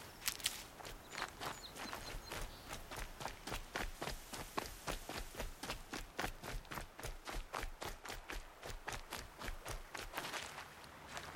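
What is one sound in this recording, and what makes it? Quick footsteps run over dirt and grass.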